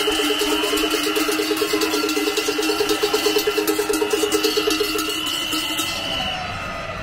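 A large crowd murmurs and calls out outdoors.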